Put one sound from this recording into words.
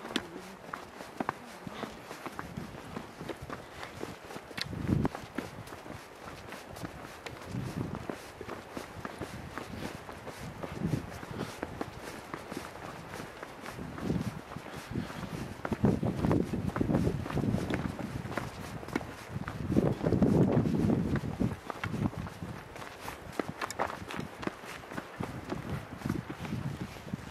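Footsteps crunch on loose gravel and stones.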